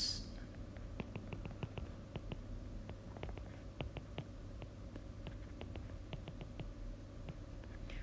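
A stylus taps and scratches lightly while writing.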